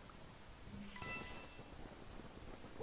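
A bright chime rings out once.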